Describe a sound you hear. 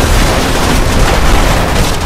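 Gunfire rattles rapidly at close range.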